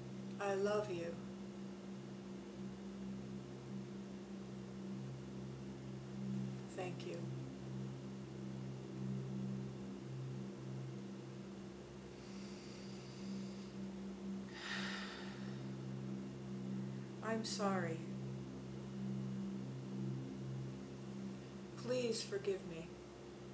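A woman speaks softly and briefly, close by.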